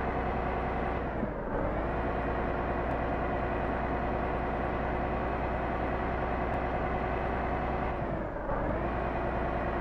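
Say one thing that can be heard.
A truck engine's pitch drops briefly as the gear changes, then picks up again.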